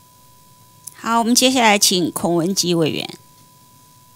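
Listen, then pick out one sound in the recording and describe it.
A woman speaks briefly through a microphone.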